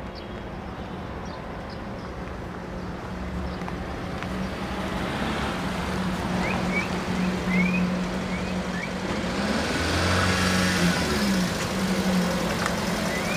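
A van engine hums as the van drives slowly closer.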